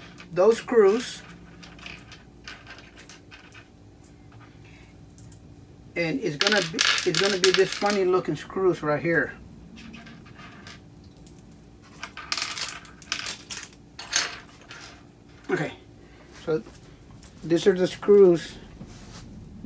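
Small plastic and metal parts click and rattle.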